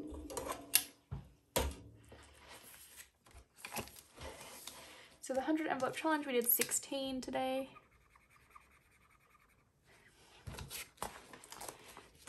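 Paper pages rustle and flip over.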